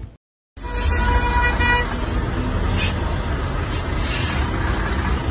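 A heavy truck engine rumbles close by.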